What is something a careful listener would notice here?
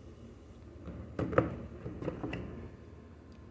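A plastic battery cover clicks and scrapes as it slides off.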